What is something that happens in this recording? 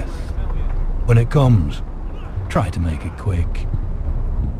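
A young man answers quietly.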